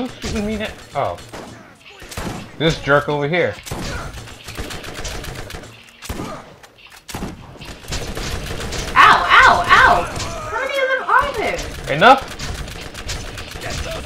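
Video game gunshots crack in quick bursts.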